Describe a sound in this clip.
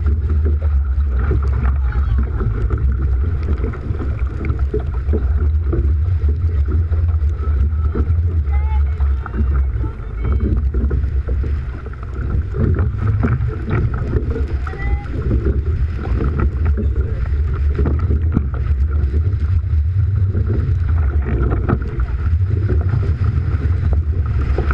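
Oars splash into choppy water.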